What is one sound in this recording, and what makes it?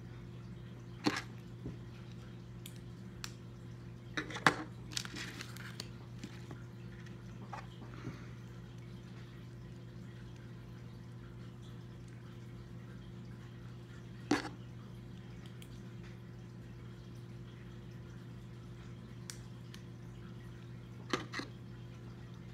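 Plastic toy bricks click and clack as they are snapped together.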